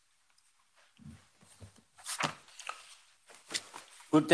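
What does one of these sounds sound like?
Papers rustle and thump onto a desk.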